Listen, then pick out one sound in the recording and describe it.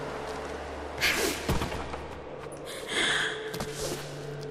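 Hands grab and scrape on a wooden wall.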